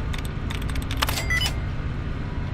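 A terminal gives a short electronic chime.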